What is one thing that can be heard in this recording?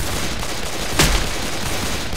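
A shotgun fires once with a loud boom.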